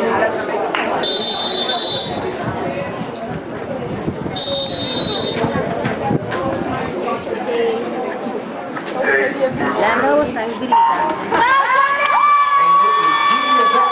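A crowd chatters and calls out outdoors.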